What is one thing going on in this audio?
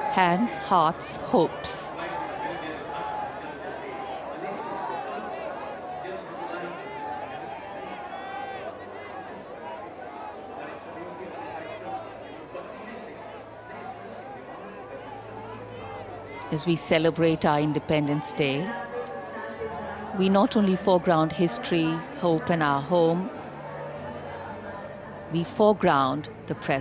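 A large crowd of men and women cheers and chatters excitedly nearby.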